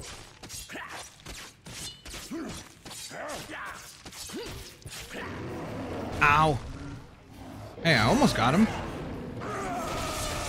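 Heavy blows thud and smack in a fight.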